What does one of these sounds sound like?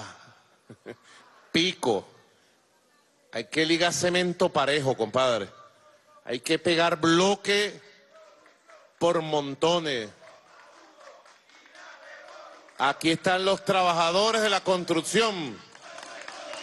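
A man speaks forcefully into a microphone, in short bursts with pauses.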